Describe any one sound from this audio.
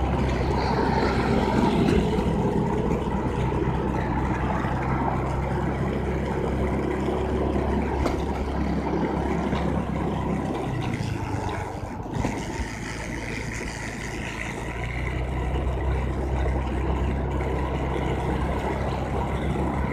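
A scooter engine hums steadily, easing off briefly and picking up again.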